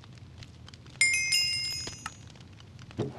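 A grindstone rings out with a bright, shimmering metallic chime that fades away.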